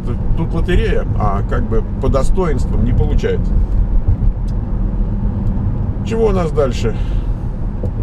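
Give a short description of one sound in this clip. A middle-aged man speaks calmly and close by.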